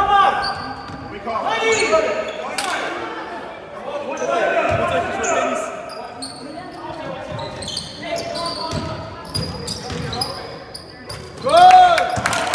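Sneakers squeak sharply on a wooden court in an echoing gym.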